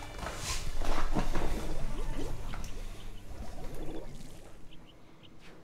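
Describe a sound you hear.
Upbeat video game music plays.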